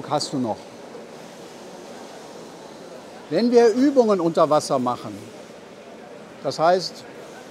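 A middle-aged man speaks calmly in a large echoing hall.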